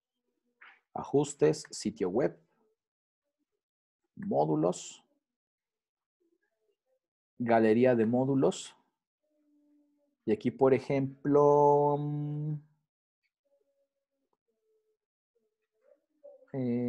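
A man speaks calmly in short phrases through a computer microphone, close by.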